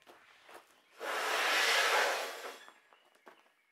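Metal beams scrape as they slide across one another.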